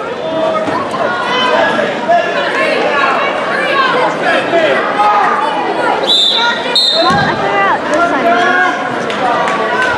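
Spectators shout and cheer in a large echoing hall.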